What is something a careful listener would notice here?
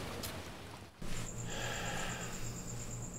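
Insects chirp steadily in the night outdoors.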